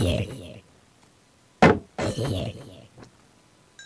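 A video game zombie groans.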